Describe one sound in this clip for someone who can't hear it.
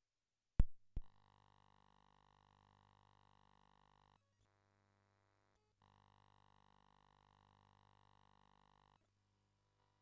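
A low electronic buzz hums steadily, cutting out briefly.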